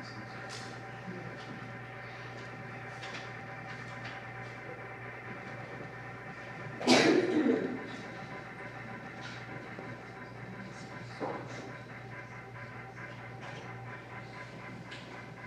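Women chant slowly and steadily in an echoing room.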